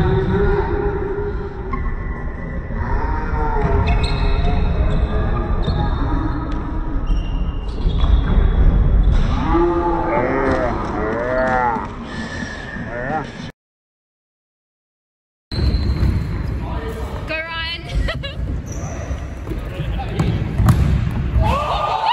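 A ball is kicked on a hard indoor court in an echoing hall.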